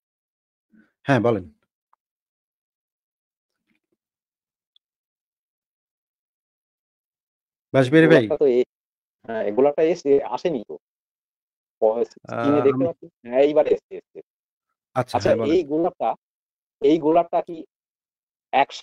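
A man speaks through an online call, in short phrases with pauses.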